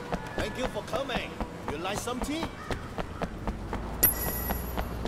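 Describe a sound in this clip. Quick footsteps run steadily on hard pavement.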